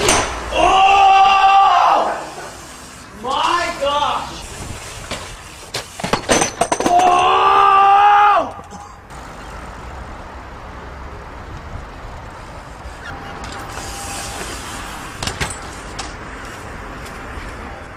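Bicycle tyres roll over pavement.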